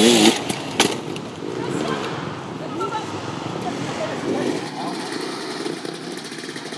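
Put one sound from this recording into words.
A dirt bike engine revs up and down nearby, outdoors.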